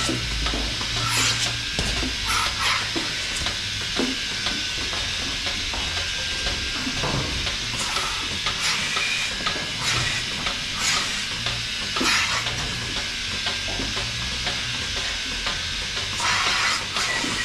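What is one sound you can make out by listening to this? Air hisses in short bursts as milking cups are attached.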